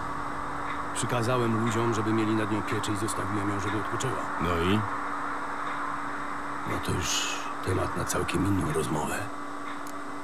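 A middle-aged man speaks calmly in a deep voice.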